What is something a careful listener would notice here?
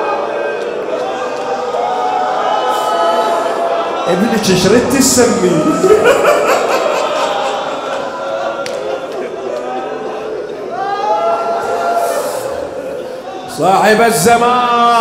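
A man chants loudly and mournfully through a microphone, echoing in a large hall.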